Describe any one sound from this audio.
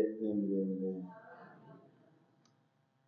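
A man chants through a microphone, echoing in a large hall.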